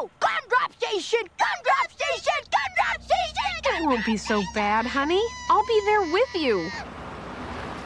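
Cartoon children's voices speak and sing in a lively way, close up.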